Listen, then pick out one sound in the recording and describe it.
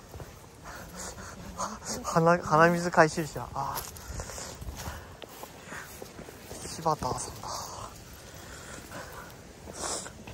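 Footsteps scuff along a stone path.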